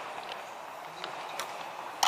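A game clock button clicks.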